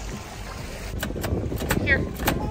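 A coin-operated dispenser crank clicks and rattles.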